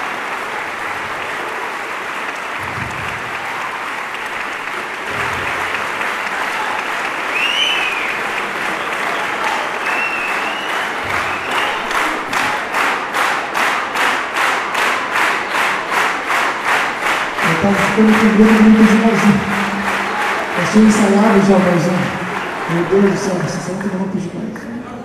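A large audience applauds and cheers.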